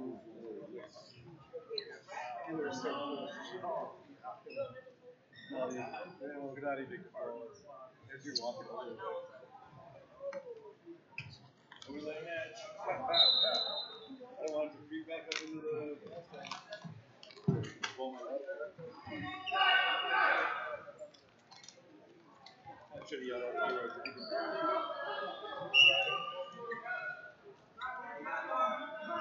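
Voices of men and women chatter throughout a large echoing gym.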